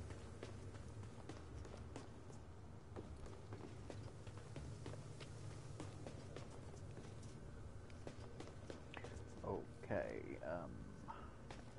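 Quick footsteps run across a hard metal floor.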